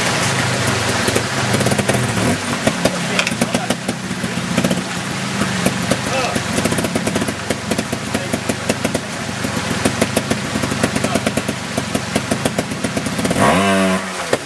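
A stream rushes and splashes over rocks.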